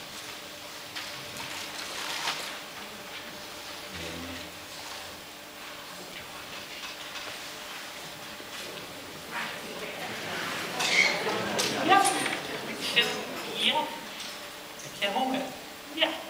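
An audience murmurs and chatters quietly in a large hall.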